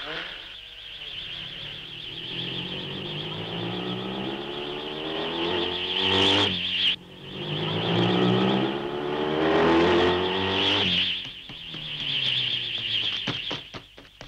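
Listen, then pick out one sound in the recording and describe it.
A motorcycle engine roars and revs up and down as it speeds past.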